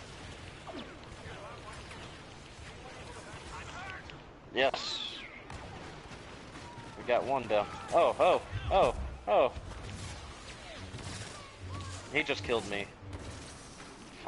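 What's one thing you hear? Blaster shots fire in quick bursts.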